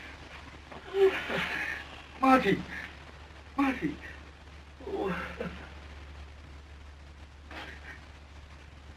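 A man speaks softly and with emotion, close by.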